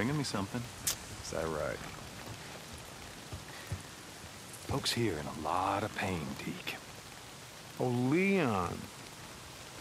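A man speaks in a low, rough voice, close by.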